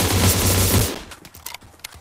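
Gunfire rings out in a video game.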